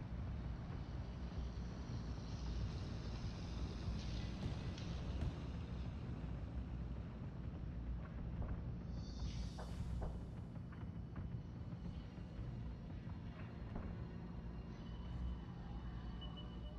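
Fires rumble low and steadily in the distance.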